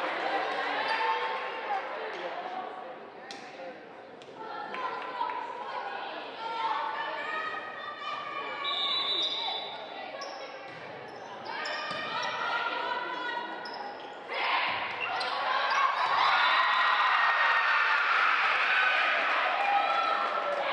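Young women call out to each other across a large echoing gym.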